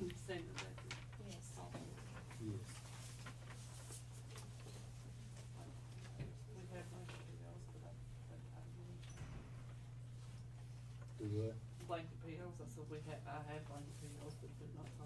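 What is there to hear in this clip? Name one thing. A man speaks calmly, heard through a room microphone.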